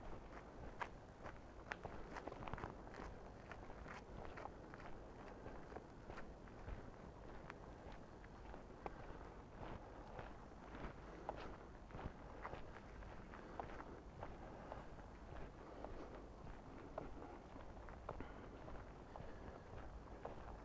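Footsteps crunch steadily on a gravel path.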